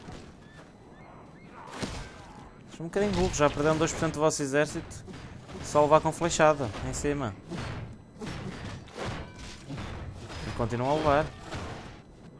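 Swords and shields clash as soldiers fight.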